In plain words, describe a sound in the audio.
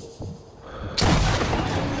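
A rifle fires a loud shot that echoes in a large hall.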